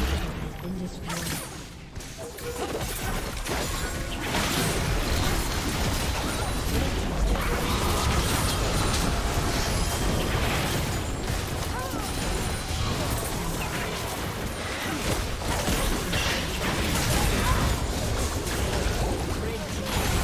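Game spells and attacks crash and burst in rapid, busy clashes.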